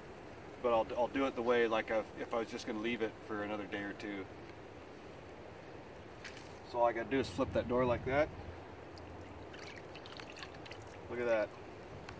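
Dry reeds rustle and crackle as they are moved.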